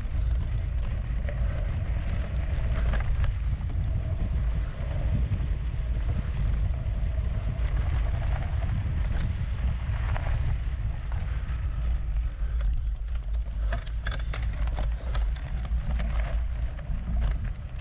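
Bicycle parts rattle and clatter over bumps.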